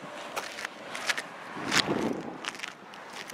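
A vehicle drives past on a nearby road.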